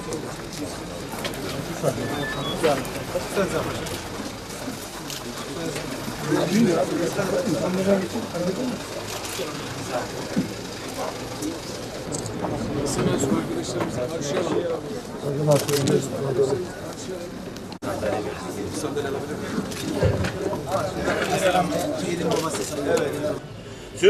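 A crowd of men murmurs and talks all around, close by.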